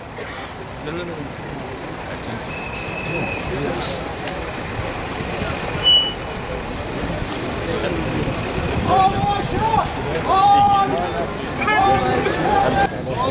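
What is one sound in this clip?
A crowd murmurs and walks along outdoors.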